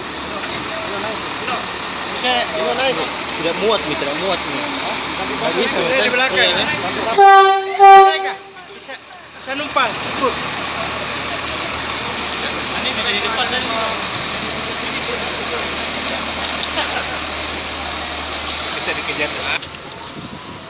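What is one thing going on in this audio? A diesel locomotive engine rumbles steadily close by.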